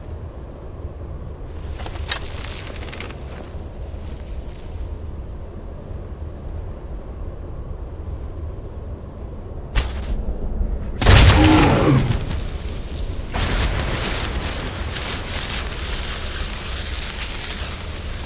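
Wind blows steadily with a low rumble.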